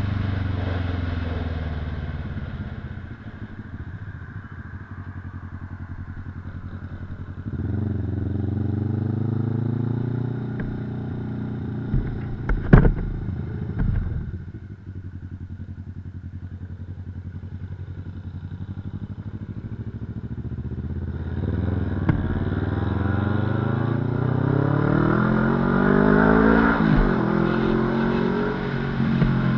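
A motorcycle engine revs up and down through the gears.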